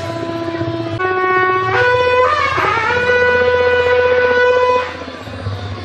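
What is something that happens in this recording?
A long curved horn blares, rising in pitch and then holding a loud note.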